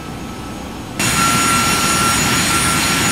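Jet engines roar loudly as an airliner flies past.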